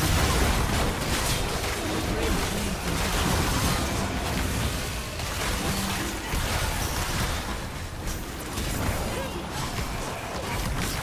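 Spell effects crackle and burst in a fast fight.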